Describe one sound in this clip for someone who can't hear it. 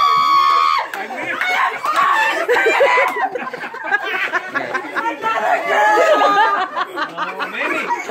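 A group of women and men cheer and laugh loudly together.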